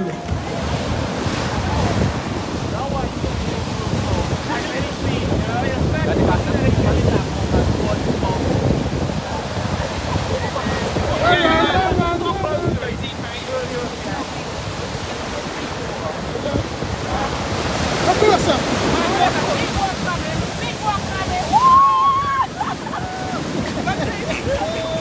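Waves break and wash onto the shore nearby.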